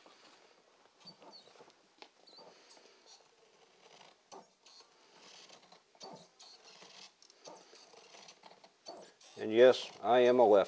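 Scissors snip and cut through paper.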